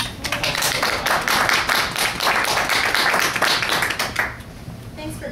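People clap and applaud in a room.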